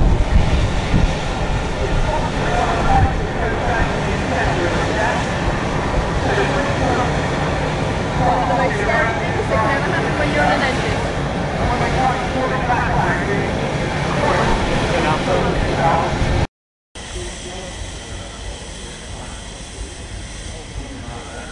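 A steam traction engine hisses loudly as it vents clouds of steam.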